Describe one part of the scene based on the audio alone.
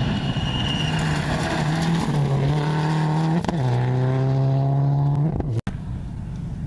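A rally car engine roars and revs up through the gears as the car speeds past.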